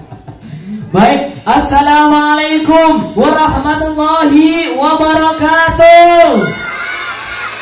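A man sings loudly through a loudspeaker.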